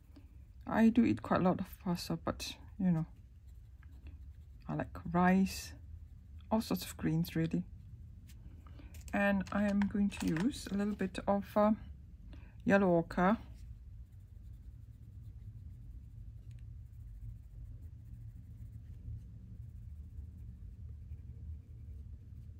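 A colored pencil scratches softly on paper.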